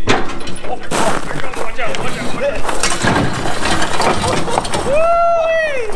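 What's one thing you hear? Car tyres roll down metal ramps onto gravel.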